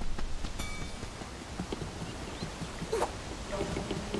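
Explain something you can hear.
Footsteps thud on a wooden rope bridge.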